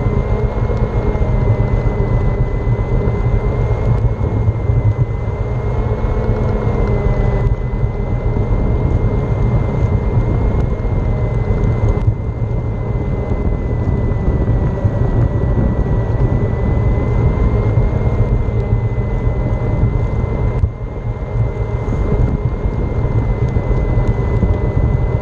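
Wheels rumble over pavement up close.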